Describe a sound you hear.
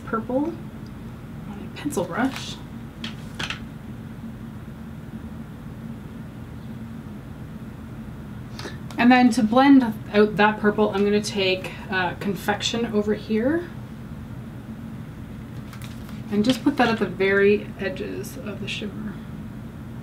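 A woman talks calmly and close to a microphone, in short bursts.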